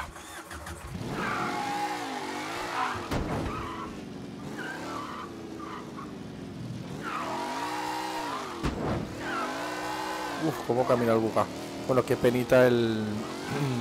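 A car engine revs up and down as the car drives.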